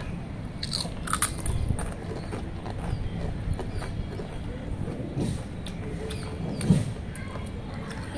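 A boy crunches on crisp chips.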